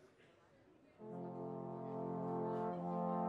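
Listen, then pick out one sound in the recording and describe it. A brass ensemble plays a chord together, loud and sustained.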